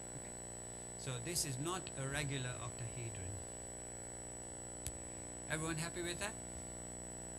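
A man lectures calmly through a microphone, in short bursts with pauses.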